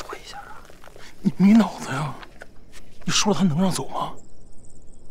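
A man speaks in a tense, low voice close by.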